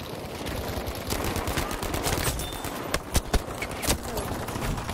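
Gunshots crack in sharp, quick bursts.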